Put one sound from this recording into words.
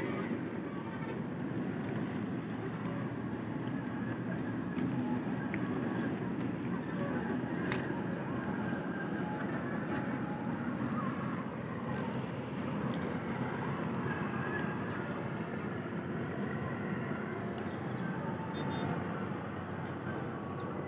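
Palm fronds rustle in the wind outdoors.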